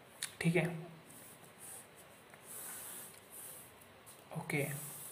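A pen scratches across paper, drawing lines.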